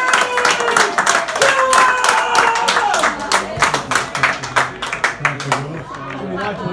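Spectators clap rapidly nearby.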